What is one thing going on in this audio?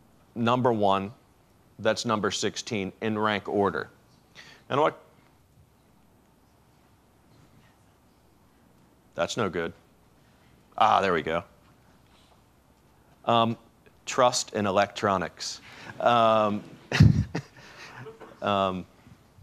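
A middle-aged man speaks to an audience through a microphone, with pauses, in a large room.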